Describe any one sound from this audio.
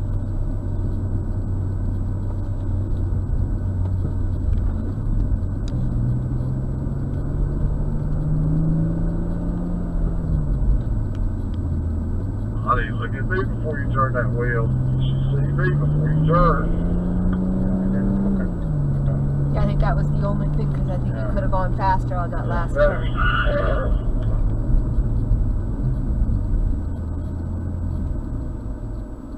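A car engine hums, rising and falling in pitch as the car speeds up and slows down.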